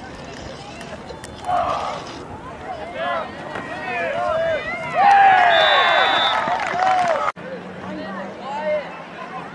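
A crowd of spectators cheers and shouts at a distance outdoors.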